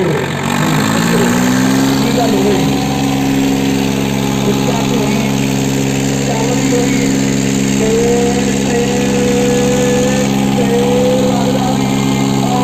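Tractor engines roar loudly under heavy strain.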